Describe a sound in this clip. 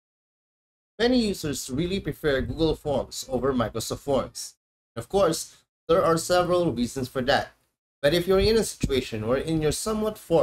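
A man talks calmly and closely into a microphone.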